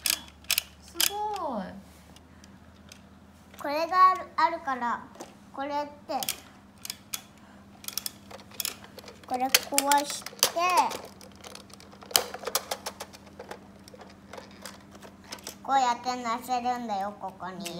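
A young child talks in a high voice close by.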